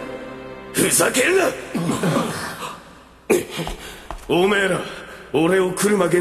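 A young man speaks in a low, tense voice.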